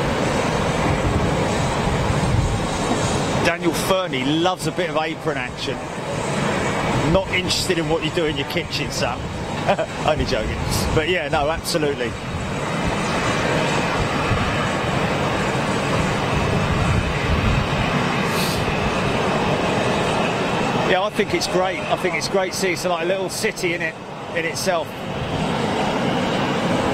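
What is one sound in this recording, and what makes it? A jet airliner's engines whine and rumble steadily as the plane taxis nearby.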